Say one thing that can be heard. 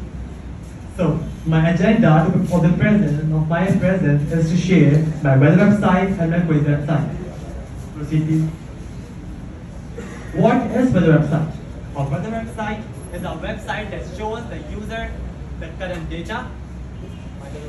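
A young man speaks through a microphone and loudspeakers in an echoing room.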